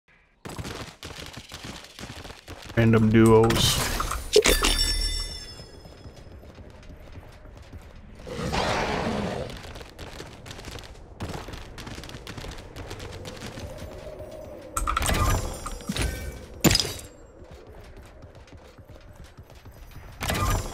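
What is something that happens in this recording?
Footsteps thud on wooden floors.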